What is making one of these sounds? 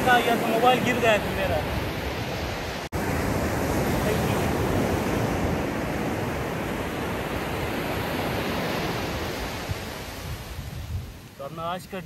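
Waves wash onto a beach with a steady rush.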